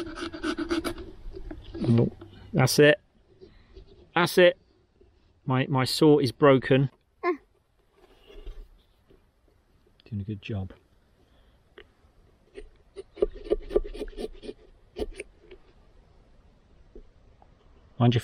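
A knife scrapes and cuts into a pumpkin.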